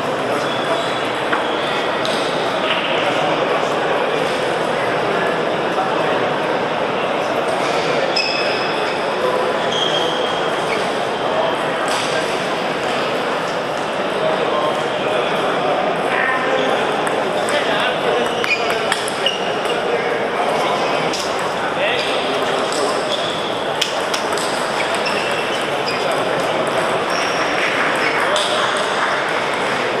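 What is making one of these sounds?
A large echoing hall fills with the steady murmur of many people talking.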